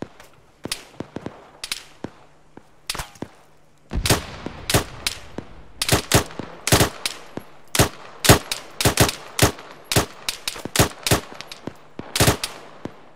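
Rifle shots crack out rapidly, one after another.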